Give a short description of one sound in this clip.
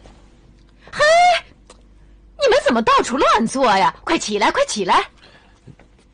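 A woman shouts sharply with annoyance.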